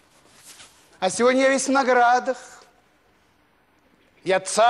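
An elderly man speaks expressively into a microphone.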